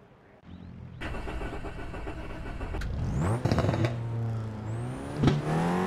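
A car engine idles and revs up sharply.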